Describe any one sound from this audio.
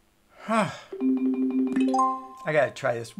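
Electronic game chimes ring out in a quick rising run.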